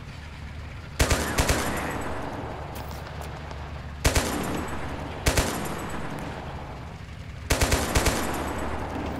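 A heavy gun fires loud booming shots.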